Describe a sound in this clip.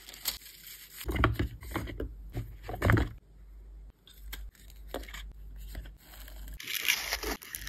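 Cellophane wrapping crackles as small items are bagged.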